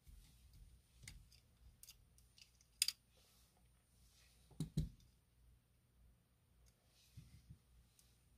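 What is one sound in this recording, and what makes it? Small plastic parts click and tap as hands fit a circuit board.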